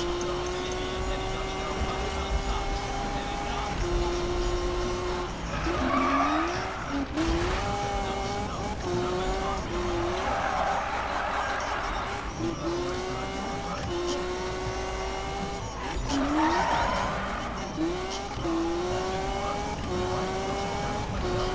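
A car engine revs high and shifts gears repeatedly.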